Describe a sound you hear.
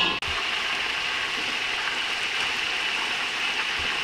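A ladle scrapes in a metal pot.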